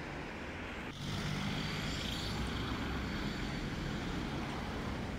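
Car engines idle and hum close by in traffic.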